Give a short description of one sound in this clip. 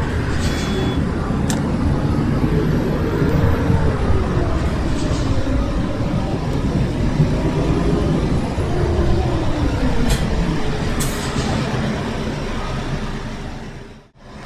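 A bus engine hums and whines as the bus drives along.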